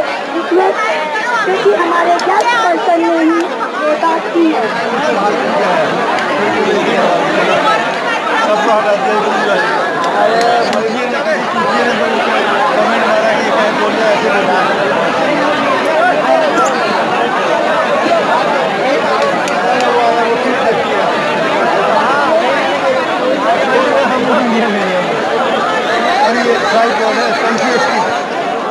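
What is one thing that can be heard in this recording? A large crowd chatters and shouts loudly all around, outdoors.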